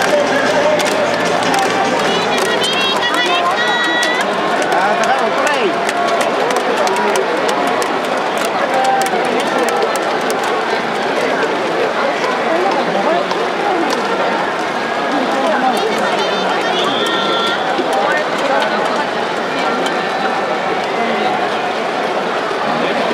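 A large stadium crowd chatters and cheers throughout.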